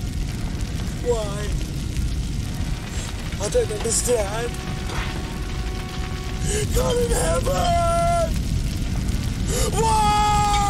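A man screams in terror.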